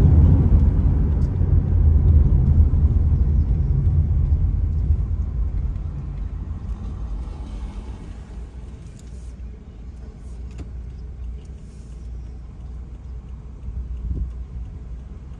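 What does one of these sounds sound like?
A car engine rumbles, then settles to a steady idle.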